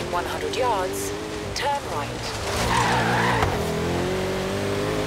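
Tyres screech while drifting on the road.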